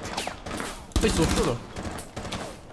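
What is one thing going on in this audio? A submachine gun fires a short burst at close range.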